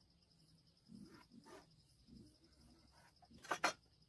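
Wood scrapes softly as a hand slides across a board.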